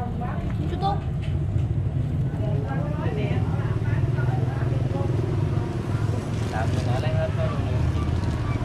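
A plastic bag rustles and crinkles.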